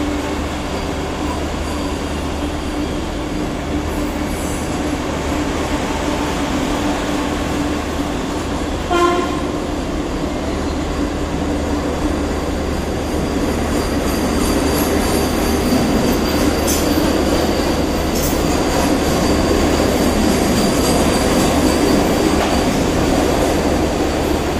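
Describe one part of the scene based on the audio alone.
A train rushes past close by with a steady loud roar and rattle of wheels on the rails.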